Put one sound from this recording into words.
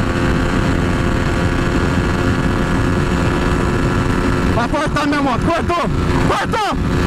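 A motorcycle engine hums steadily at speed.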